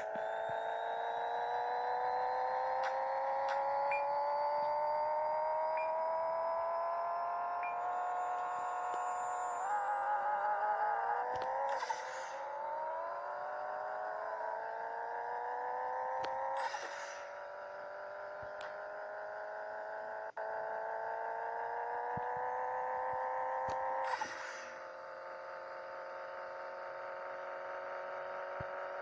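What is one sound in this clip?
A car engine revs high and climbs steadily in pitch.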